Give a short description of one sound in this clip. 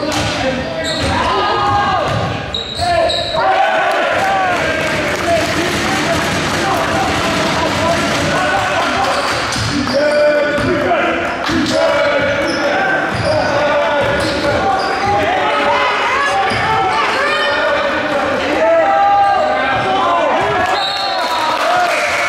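Spectators shout and cheer from the sidelines.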